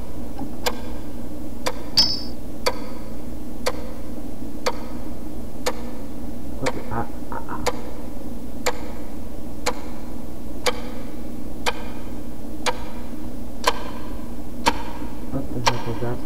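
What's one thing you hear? A clock ticks steadily, once every second.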